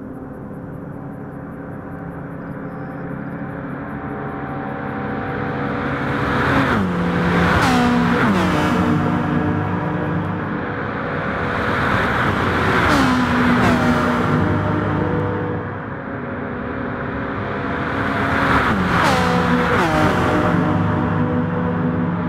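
Racing car engines roar loudly, rising and falling in pitch as they rush past.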